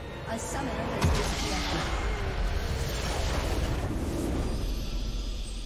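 Magic spells burst and crackle.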